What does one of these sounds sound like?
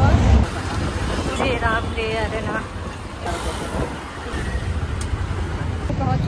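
An auto-rickshaw engine rumbles and rattles close by.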